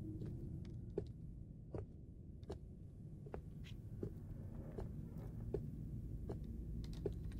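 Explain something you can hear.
Footsteps tap slowly and evenly on a wooden floor.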